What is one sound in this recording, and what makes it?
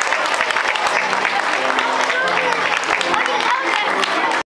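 A group of young violinists plays a tune together.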